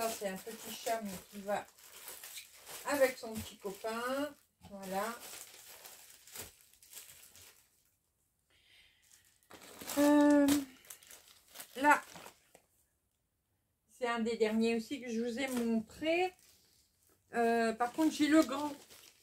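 Paper magazines rustle and slap as they are handled.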